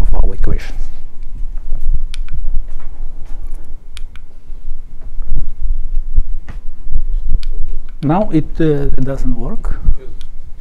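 A man lectures, speaking calmly.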